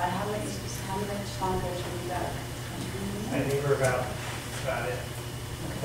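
A woman speaks calmly into a microphone in a room with a slight echo.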